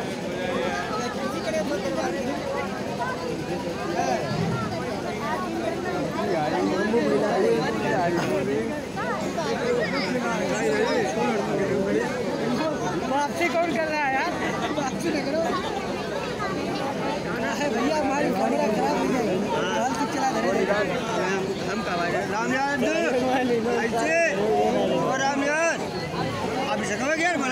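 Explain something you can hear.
A crowd of men and women chatter all around, close by.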